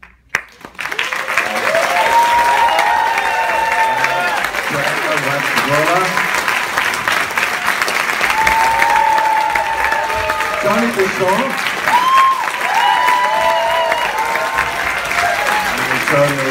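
An audience cheers and whoops.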